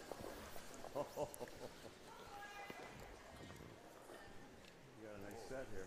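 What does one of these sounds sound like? Brooms scrub rapidly across ice.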